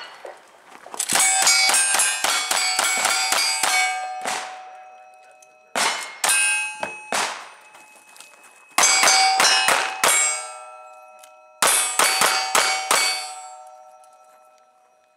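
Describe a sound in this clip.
Steel targets ring out when struck by bullets.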